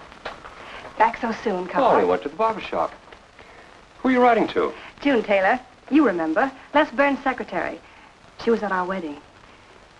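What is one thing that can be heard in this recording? A man speaks warmly nearby.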